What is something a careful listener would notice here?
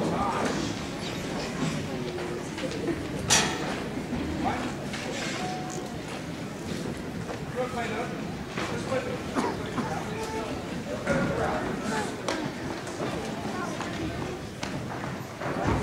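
Saxophones play in a band, heard in a large echoing hall.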